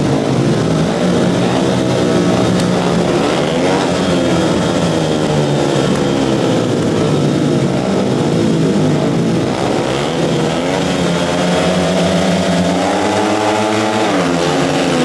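Several motorcycle engines rev loudly and unevenly at a standstill.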